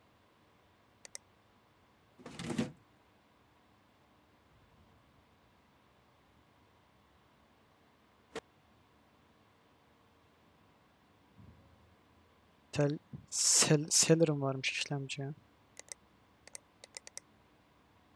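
Short soft clicks sound as parts are picked and removed.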